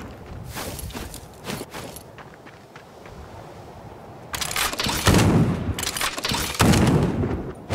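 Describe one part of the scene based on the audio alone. A sword slashes through the air.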